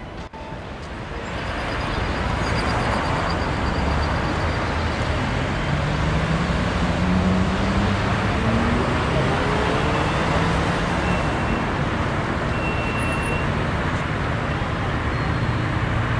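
Car traffic rumbles steadily past nearby.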